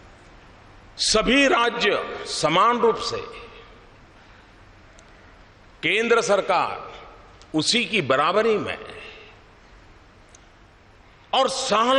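An elderly man speaks calmly and slowly into microphones, with pauses.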